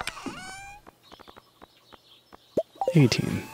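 Short game menu clicks tick in quick succession.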